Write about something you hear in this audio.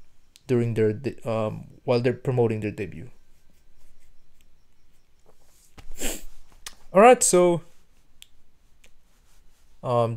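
A man speaks with animation into a close microphone, in short bursts with pauses.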